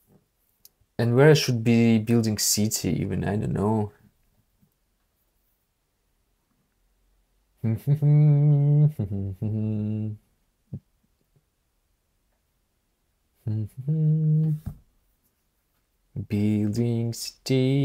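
A young man talks with animation into a close microphone, in short bursts with pauses.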